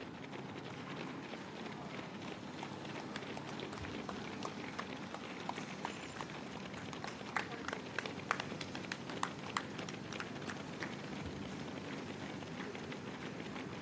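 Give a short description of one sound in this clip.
Running shoes patter quickly on pavement.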